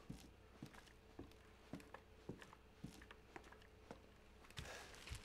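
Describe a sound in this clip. Slow footsteps thud on a gritty floor.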